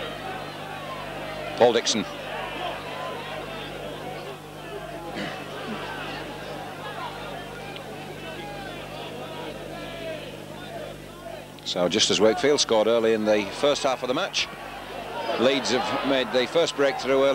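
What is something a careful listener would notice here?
A large crowd murmurs in an open-air stadium.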